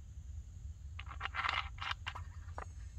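A plastic bottle crinkles and crackles in a hand.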